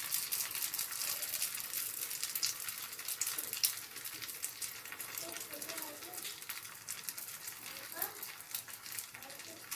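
Oil sizzles and crackles steadily around a frying patty.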